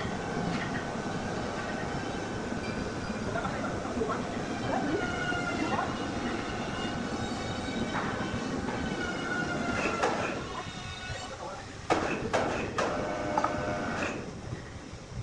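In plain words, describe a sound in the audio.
An electric hoist whines and hums as it lifts a heavy load.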